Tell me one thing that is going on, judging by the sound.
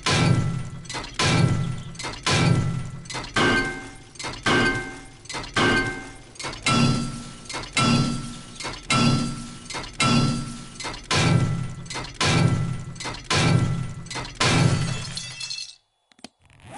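A wrench bangs repeatedly against metal with heavy, rhythmic clanks.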